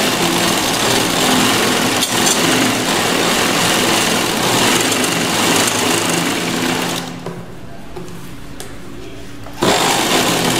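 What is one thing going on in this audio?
A sewing machine whirs steadily as it stitches fabric, stops briefly and starts again.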